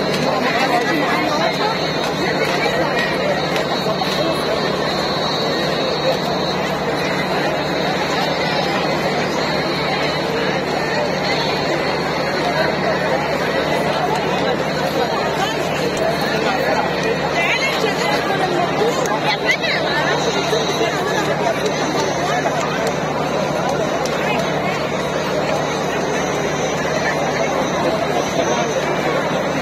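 Loud festive music plays through loudspeakers.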